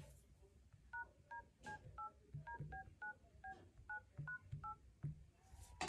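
A phone beeps with short keypad tones as a number is dialled.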